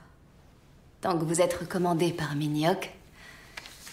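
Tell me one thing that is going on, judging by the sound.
A young man answers calmly and close by.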